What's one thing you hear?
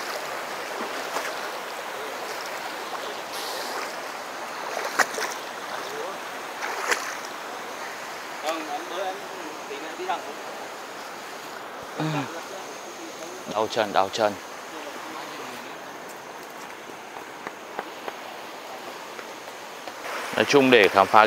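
A river rushes and splashes over rocks nearby.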